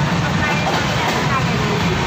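A woman speaks close to the microphone.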